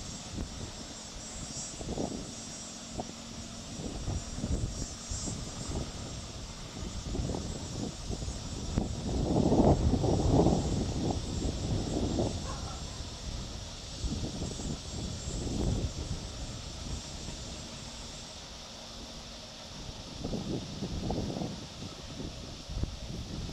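Water laps gently against a stone quay.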